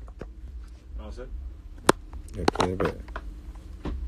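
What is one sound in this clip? A young man speaks briefly and quietly, close to a phone's microphone.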